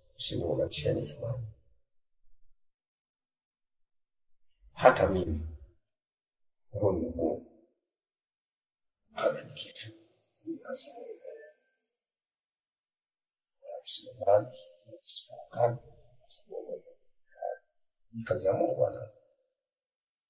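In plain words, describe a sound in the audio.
A middle-aged man speaks with animation close by, in short bursts with pauses.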